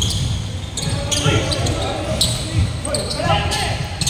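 Young men call out to each other from across a large echoing hall.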